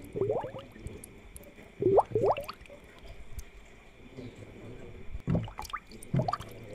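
An aquarium pump hums steadily.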